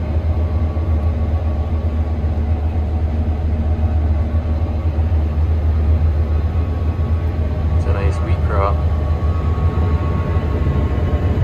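A combine harvester's engine drones while harvesting, heard from inside the cab.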